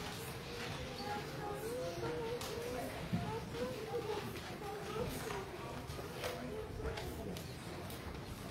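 A woman sings in an echoing hall.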